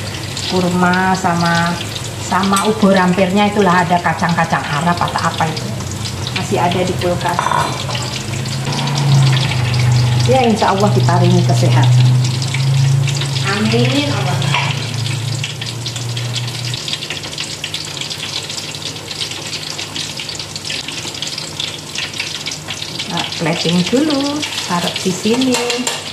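Dishes clink as a woman handles them.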